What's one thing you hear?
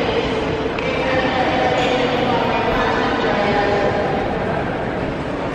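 Suitcase wheels roll across a hard floor in a large echoing hall.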